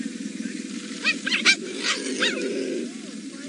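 Cheetahs chirp in short, high, bird-like calls.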